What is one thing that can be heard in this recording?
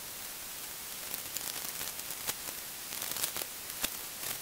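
Tent fabric rustles and flaps as it is handled.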